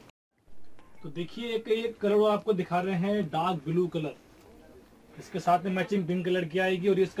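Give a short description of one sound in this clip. A young man talks calmly and clearly, close by.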